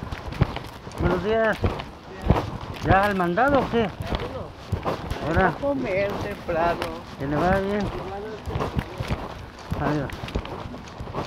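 A woman speaks loudly close by, outdoors.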